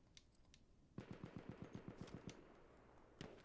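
A submachine gun fires a rapid burst close by.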